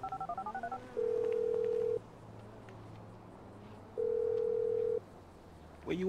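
A phone line rings with steady beeps.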